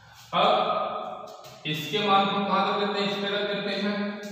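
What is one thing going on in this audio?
Chalk scrapes and taps on a blackboard.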